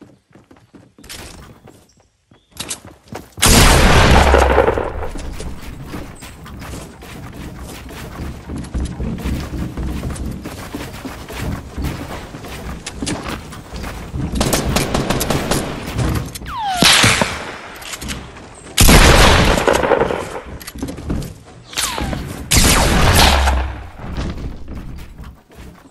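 Wooden planks clatter and thud into place in quick succession.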